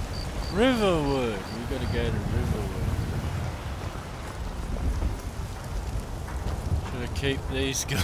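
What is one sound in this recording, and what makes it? Footsteps crunch on a cobbled path.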